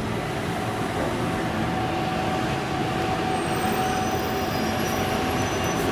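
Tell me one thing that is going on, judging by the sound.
A train rolls in along the rails and slows to a stop.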